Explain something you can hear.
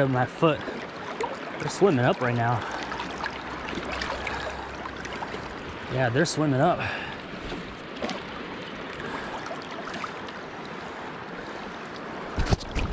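Water laps and splashes against a small boat.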